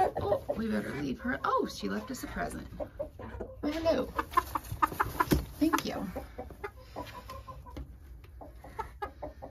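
A hen clucks softly close by.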